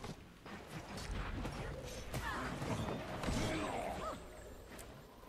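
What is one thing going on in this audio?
Magic blasts burst and crackle in a fight.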